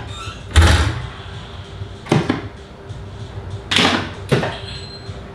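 Pinball flippers clack as a player presses the buttons.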